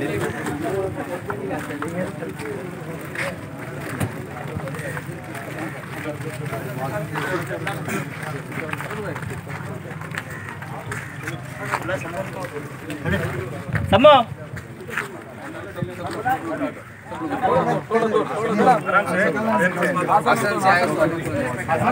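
A crowd of men talk and murmur all around, outdoors.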